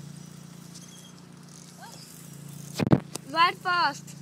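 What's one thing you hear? Children's bicycles roll past on pavement.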